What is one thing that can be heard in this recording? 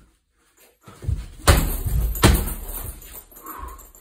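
Gloved punches and kicks thud against a heavy punching bag.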